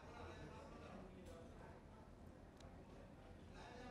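A crowd of men murmurs faintly outdoors.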